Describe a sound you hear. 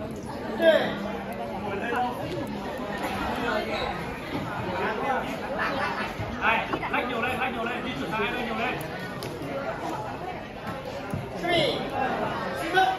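A crowd of spectators chatters throughout a large echoing hall.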